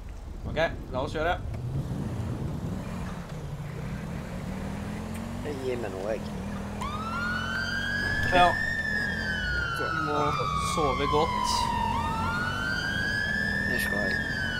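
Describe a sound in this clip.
A police car engine hums as the car drives along.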